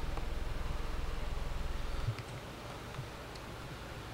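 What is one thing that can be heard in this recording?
A television plays quietly in the room.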